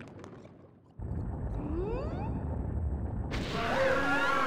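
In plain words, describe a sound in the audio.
Lava bubbles and rumbles steadily.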